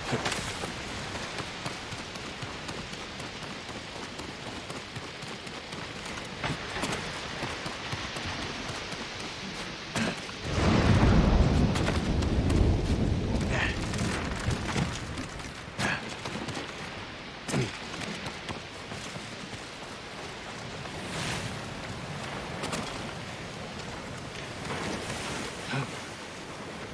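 Footsteps scrape and thud on rock.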